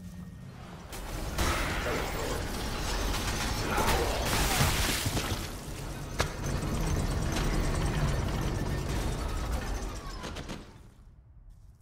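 A creature bursts apart with a loud wet blast.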